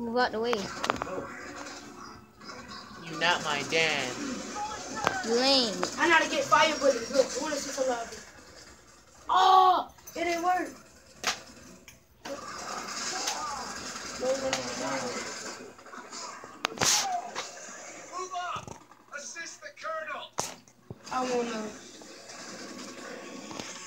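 Video game sounds play from a television speaker.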